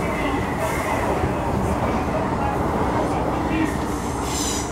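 Another train passes close by with a rushing roar.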